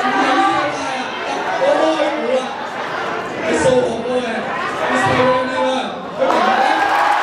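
A young man speaks with animation into a microphone over loudspeakers in a large echoing hall.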